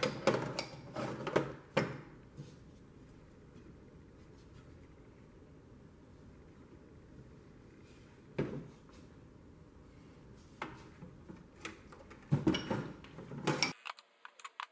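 A metal tool box clatters and clanks as it is handled.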